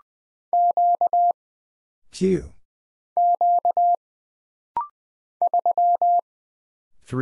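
A telegraph key beeps out Morse code in short and long steady tones.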